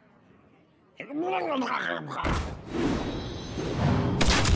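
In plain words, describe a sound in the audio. A card creature bursts onto the board with a sound effect.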